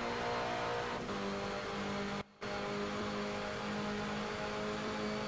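A racing car engine holds high revs.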